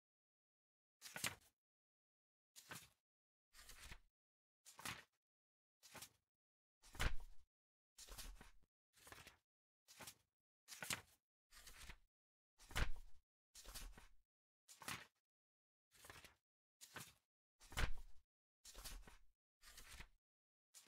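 Book pages turn again and again with quick papery rustles.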